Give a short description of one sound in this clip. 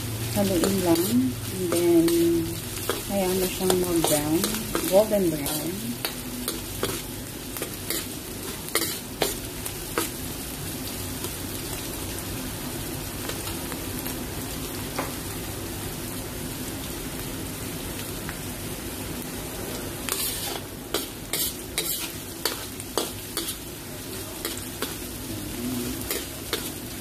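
A metal spatula scrapes and clacks against a pan.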